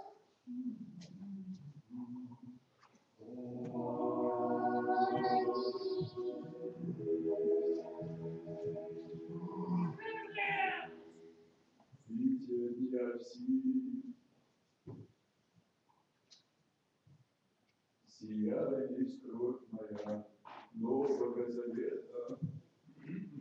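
A man intones prayers in a low voice.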